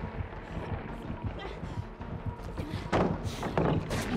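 A wooden pallet crashes down.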